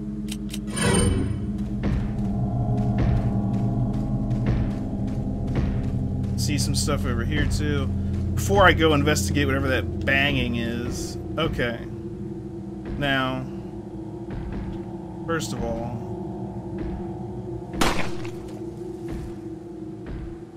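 Low eerie music drones steadily.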